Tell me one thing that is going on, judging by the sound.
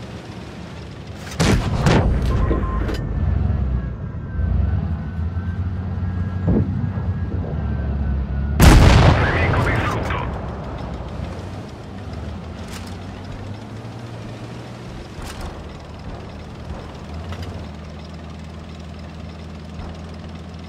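A tank engine rumbles low as the tank drives.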